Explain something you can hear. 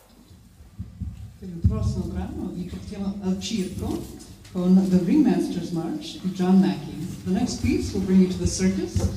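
A woman speaks calmly through a microphone and loudspeakers.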